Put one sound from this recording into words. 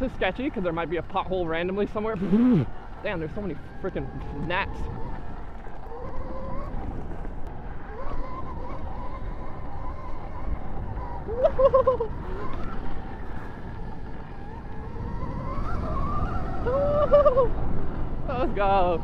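A dirt bike engine revs up and down.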